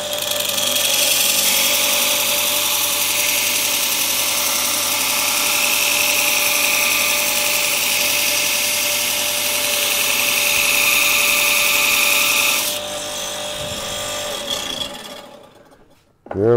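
A belt sander motor whirs steadily, then winds down.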